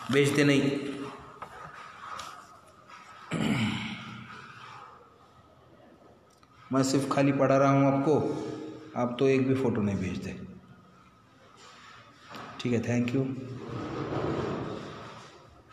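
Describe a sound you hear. A middle-aged man speaks calmly and explains, close to a microphone.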